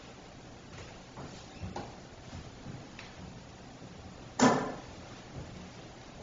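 Footsteps creak and tap softly on a wooden floor.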